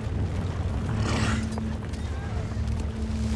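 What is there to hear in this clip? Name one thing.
Flames burst out with a roaring whoosh.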